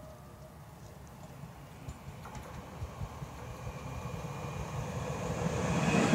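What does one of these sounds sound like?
A train rumbles closer along the tracks, growing louder.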